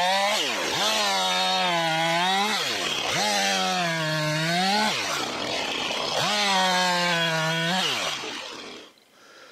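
A chainsaw revs up and down while cutting wood.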